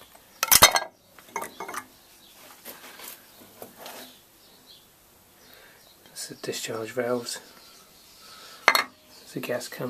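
A metal plate clinks as a hand handles it.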